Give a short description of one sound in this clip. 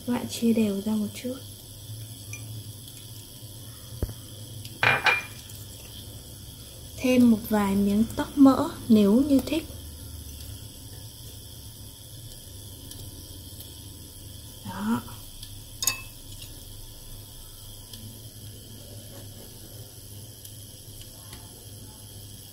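An egg sizzles softly as it fries in oil in a pan.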